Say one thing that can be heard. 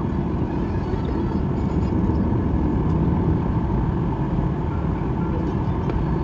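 Airplane wheels rumble along a runway.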